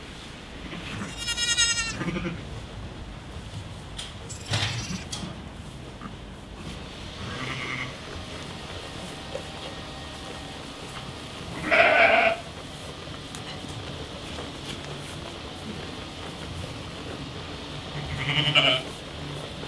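Sheep bleat loudly nearby, now and then.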